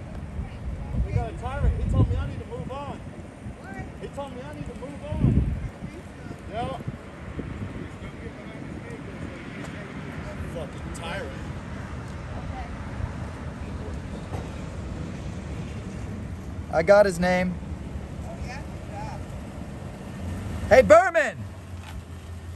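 A man speaks, muffled behind a closed car window.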